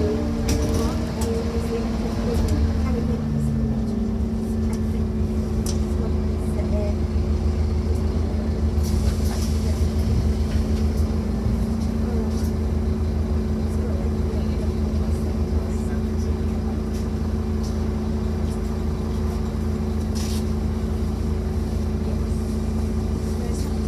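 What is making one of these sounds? The bus interior rattles and clicks over bumps.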